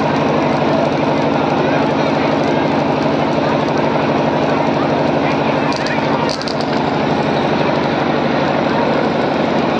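Loud music with a steady beat plays through loudspeakers.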